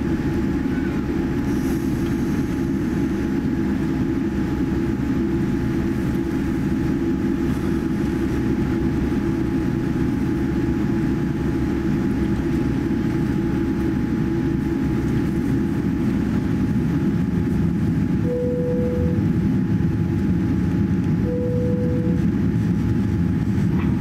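Jet engines hum and roar steadily from inside an airliner cabin as it taxis.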